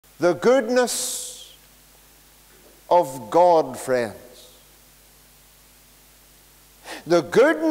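A middle-aged man speaks with animation through a microphone in an echoing room, pausing between phrases.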